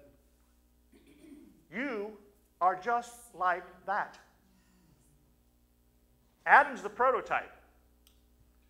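A middle-aged man speaks with animation into a microphone, pausing between phrases.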